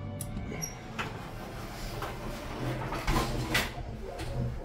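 Elevator doors slide shut with a thud.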